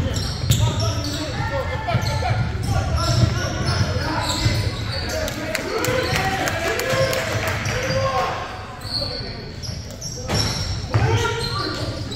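A basketball bounces and thuds on a hard floor.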